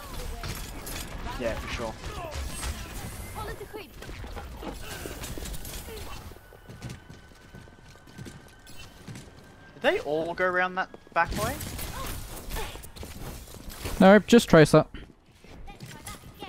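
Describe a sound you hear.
Game weapons fire with bright zapping blasts.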